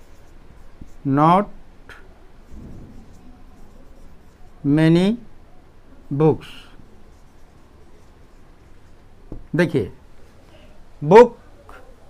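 An elderly man speaks slowly in short phrases, like a teacher explaining.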